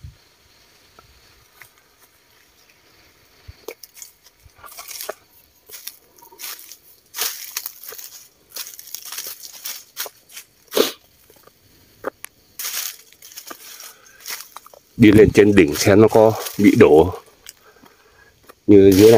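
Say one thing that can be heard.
Leaves rustle and brush past close by.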